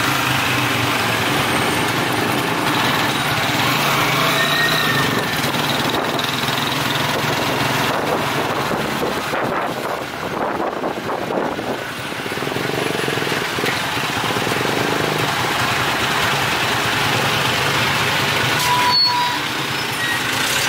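A motorcycle engine putters along close by.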